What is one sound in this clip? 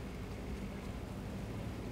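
A dog's paws pad softly on the ground nearby.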